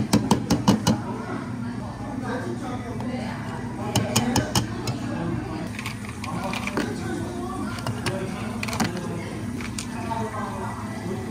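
A spoon clinks against a glass jug.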